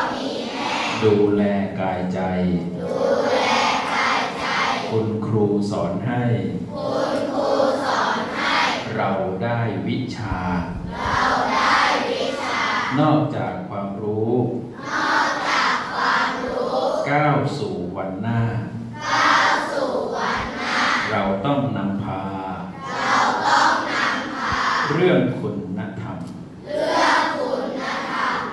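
A man speaks with animation through a microphone and loudspeaker in an echoing hall.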